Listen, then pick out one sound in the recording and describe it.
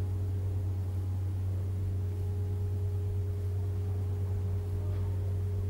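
An electric tram's motor hums steadily and low while standing still.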